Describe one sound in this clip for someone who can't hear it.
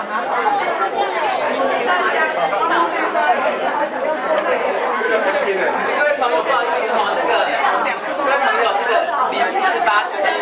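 A crowd of men and women chat over one another in a busy room.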